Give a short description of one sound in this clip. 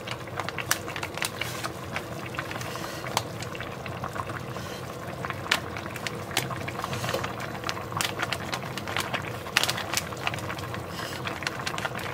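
A plastic packet crinkles and rustles.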